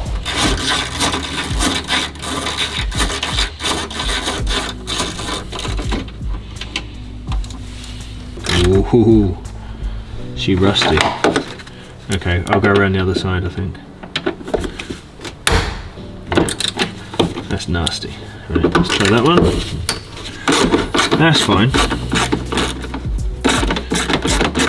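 A metal tool clicks against plastic.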